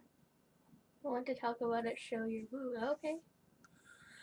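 A synthetic woman's voice speaks calmly through a computer.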